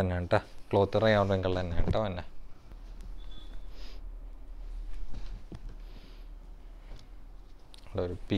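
Fabric rustles as a garment is unfolded and handled.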